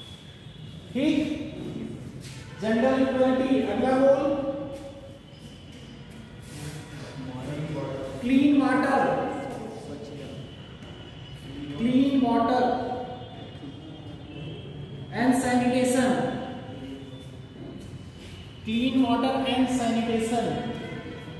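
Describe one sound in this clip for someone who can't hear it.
A man speaks loudly in short bursts with pauses in a room with some echo.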